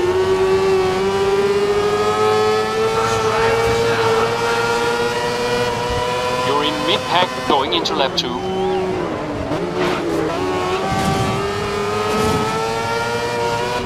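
A racing car engine screams at high revs, rising in pitch as it speeds up.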